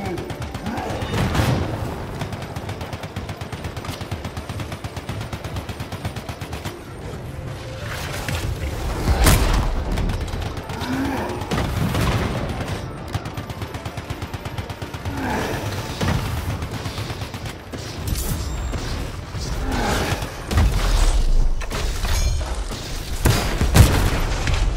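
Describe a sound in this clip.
Explosions boom loudly now and then.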